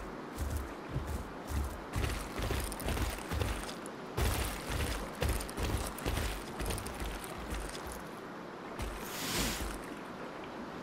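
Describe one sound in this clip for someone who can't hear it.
Heavy footsteps thud rapidly on rocky ground.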